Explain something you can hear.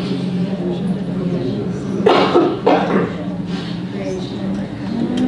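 An older man speaks calmly and clearly, as if addressing a room.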